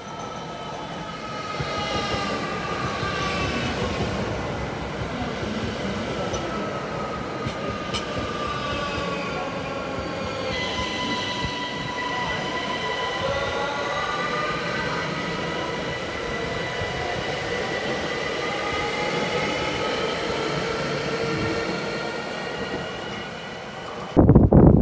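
Train wheels rumble and clatter on the rails.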